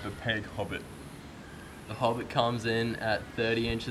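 A teenage boy laughs nearby.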